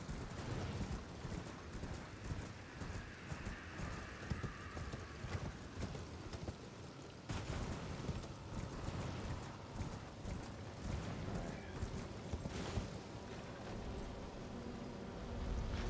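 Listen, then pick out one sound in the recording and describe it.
Horse hooves thud quickly over rough ground.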